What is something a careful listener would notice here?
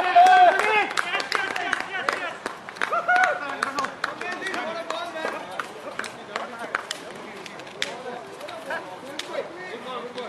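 Young men chatter at a distance outdoors.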